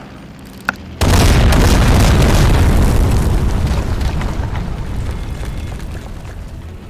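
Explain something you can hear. A rocket launcher fires with a loud blast that booms and slowly rumbles away.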